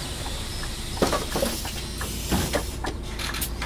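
Bus doors hiss and clunk shut.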